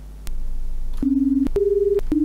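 A computer program plays short, steady electronic tones that step in pitch.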